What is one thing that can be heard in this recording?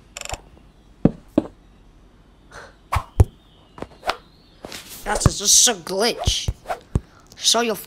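A pickaxe taps repeatedly against blocks.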